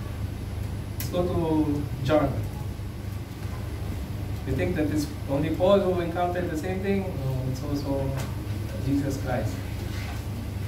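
A man speaks calmly and haltingly, close to a microphone.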